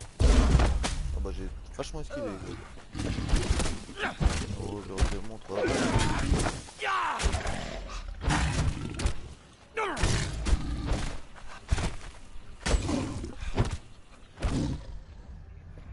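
A leopard snarls and growls.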